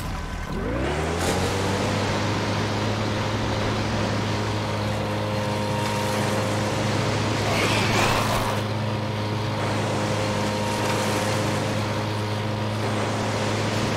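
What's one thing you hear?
Water splashes around a moving boat.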